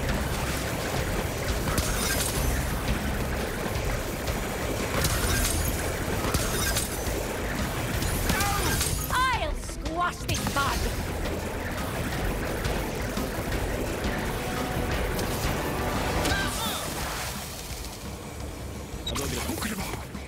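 Energy beams crackle and zap.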